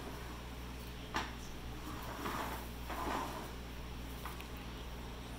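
A baby taps a plastic tray on a wooden floor.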